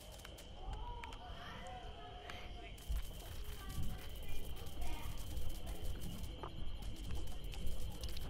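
Quick footsteps patter over grass.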